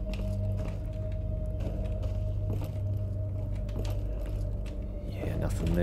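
Footsteps thud slowly on wooden floorboards.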